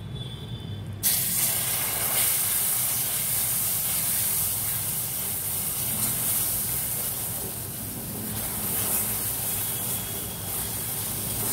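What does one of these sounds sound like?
Liquid pours into a hot pan and sizzles.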